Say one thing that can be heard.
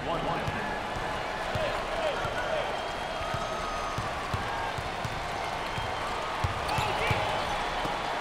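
A crowd cheers and murmurs in a large arena.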